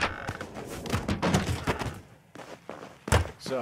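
A wooden lid bangs shut.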